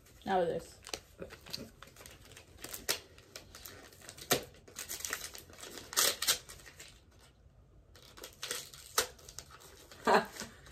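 A plastic wrapper crinkles in someone's hands.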